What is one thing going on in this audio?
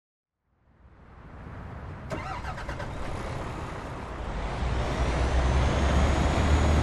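A truck's diesel engine idles with a deep rumble that slowly grows louder.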